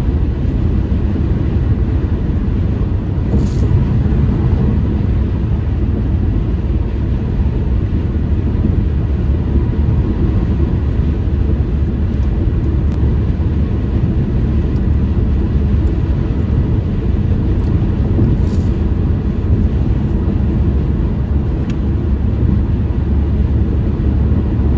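Road noise rumbles inside a car driving at speed on a freeway.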